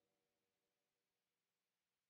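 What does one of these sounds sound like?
A bass guitar is plucked.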